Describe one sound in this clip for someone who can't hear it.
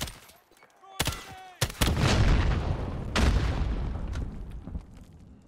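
A rifle fires a loud burst of shots.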